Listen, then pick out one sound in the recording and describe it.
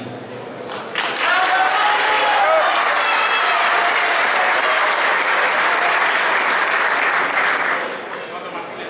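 A large crowd cheers and shouts loudly.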